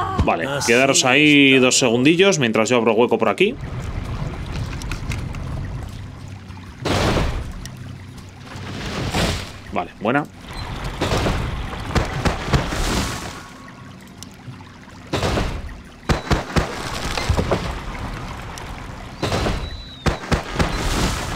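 Magic spell effects whoosh and shimmer.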